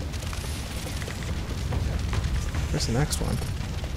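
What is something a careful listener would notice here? A fire burns and crackles steadily.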